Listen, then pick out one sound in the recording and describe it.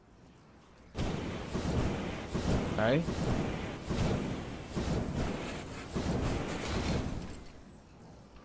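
A jetpack roars with a loud rushing thrust.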